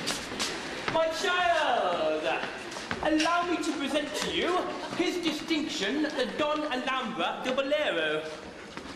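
A man sings on a stage.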